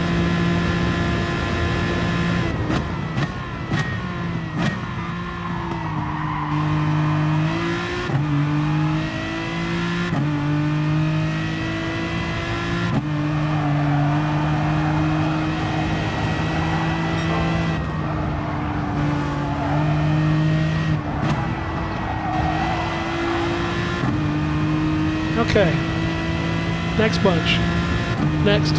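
A racing car engine roars steadily, its pitch rising and dropping with each gear change.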